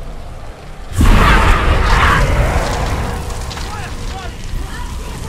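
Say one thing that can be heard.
A loud rushing blast bursts out suddenly.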